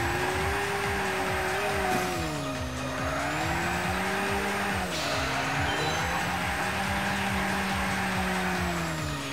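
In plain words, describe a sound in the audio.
A racing car engine roars at high revs, dipping in pitch at gear changes.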